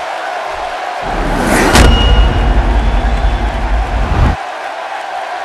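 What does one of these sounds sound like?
A deep booming whoosh swells and cuts off.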